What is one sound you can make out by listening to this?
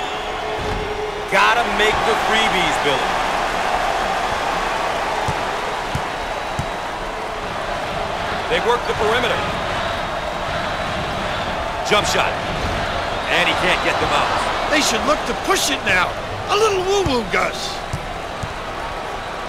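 A large crowd murmurs and cheers steadily.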